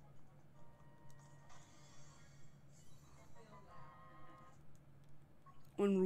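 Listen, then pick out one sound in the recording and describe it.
Video game sound effects chime and ring out.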